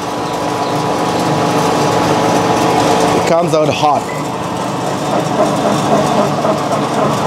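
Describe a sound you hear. A machine hums and rattles steadily.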